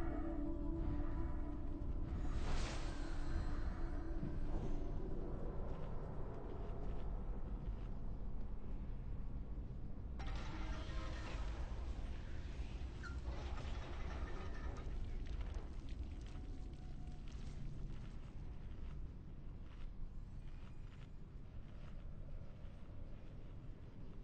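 Weapons clang and strike repeatedly.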